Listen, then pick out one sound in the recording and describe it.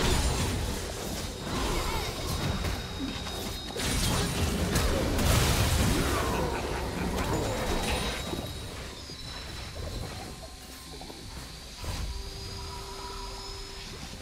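Game spell effects and impacts crackle and boom rapidly.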